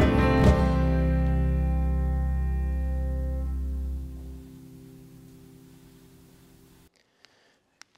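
A group of singers and a band end a song on a long chord that slowly rings out.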